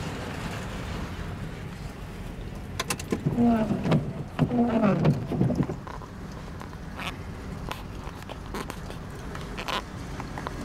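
Raindrops patter on a car window.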